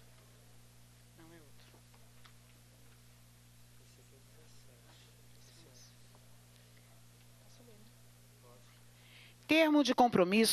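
Several men talk quietly in the background.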